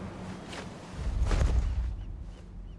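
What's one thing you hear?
A heavy body thuds onto the ground.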